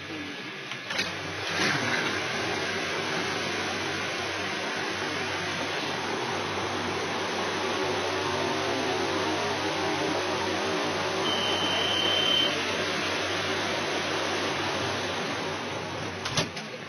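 A crowd of passengers murmurs and shuffles as train doors open.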